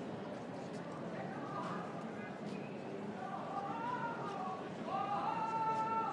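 A crowd murmurs in a street outdoors.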